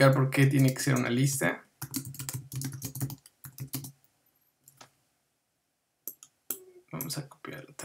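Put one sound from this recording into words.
A young man speaks calmly and close.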